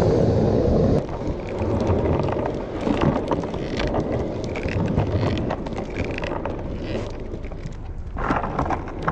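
Skateboard wheels roll and rumble over rough pavement.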